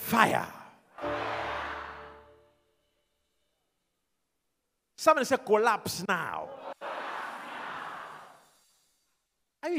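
A large crowd cheers and shouts in response.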